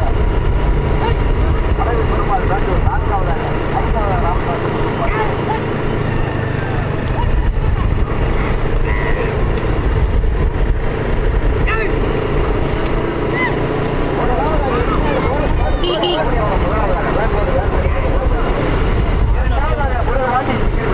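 Motorbike engines rumble close by.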